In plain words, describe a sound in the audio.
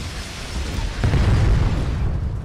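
Shells explode against a ship with loud blasts.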